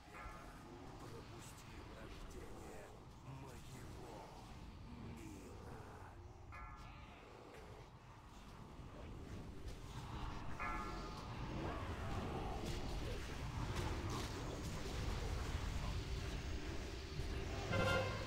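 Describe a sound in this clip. Spell effects crackle and whoosh amid a game battle.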